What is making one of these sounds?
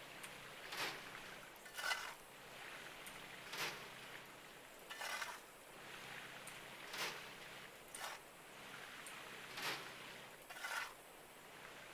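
A shovel scrapes into dirt and gravel again and again.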